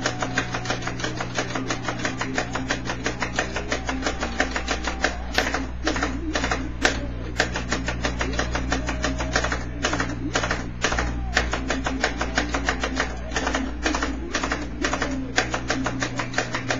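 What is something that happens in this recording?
Loud rock music with fast drums plays through a television speaker.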